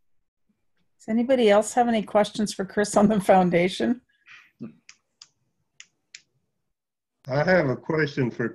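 A middle-aged woman talks calmly over an online call.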